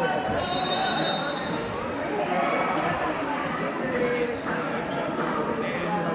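Inline skate wheels roll across a rink floor in a large echoing hall.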